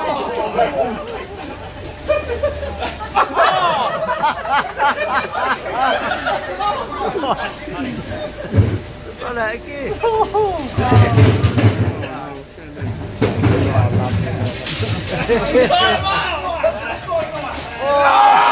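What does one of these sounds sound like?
Several voices cheer and laugh nearby.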